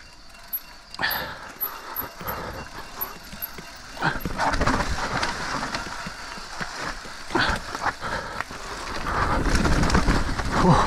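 A bicycle rattles and clatters over bumps.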